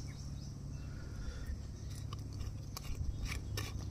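A man opens a small glass bottle with a click.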